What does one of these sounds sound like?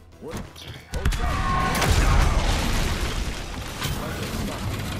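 Loud rumbling blasts and crashes of game combat.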